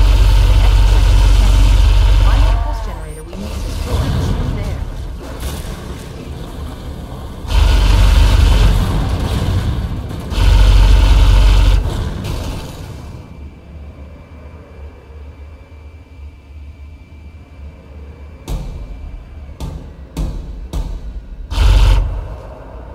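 A hovering craft's engine hums, roaring louder in bursts.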